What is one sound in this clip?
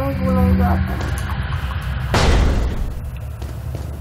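A heavy metal door grinds open.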